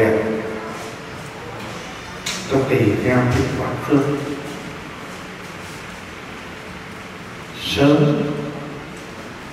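A middle-aged man speaks calmly and haltingly into a microphone, heard through a loudspeaker in an echoing room.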